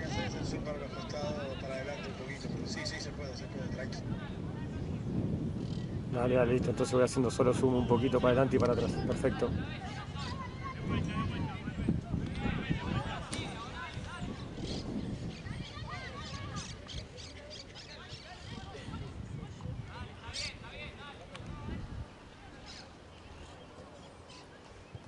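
Young players shout and call to each other outdoors across an open field.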